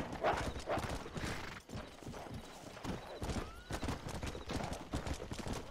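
A horse gallops with quick, heavy hoofbeats on a dirt track.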